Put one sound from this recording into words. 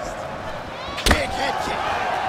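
A punch lands with a sharp smack.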